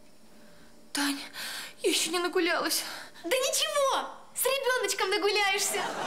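A young woman speaks with a cheerful, teasing voice nearby.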